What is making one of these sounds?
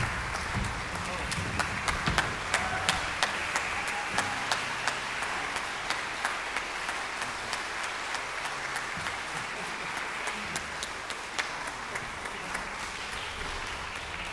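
An audience applauds in a large concert hall.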